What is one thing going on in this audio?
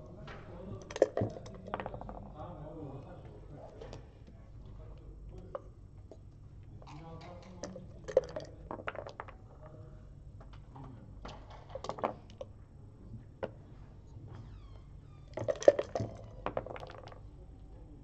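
Dice rattle and clatter onto a board.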